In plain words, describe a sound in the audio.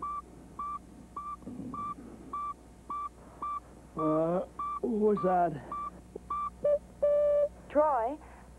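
An electronic device beeps in a steady repeating pattern.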